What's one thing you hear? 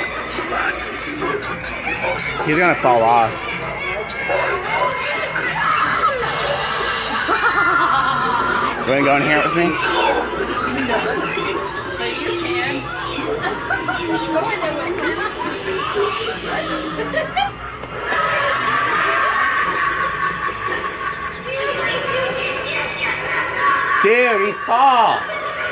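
A ghost prop moans and shrieks in a harsh recorded voice.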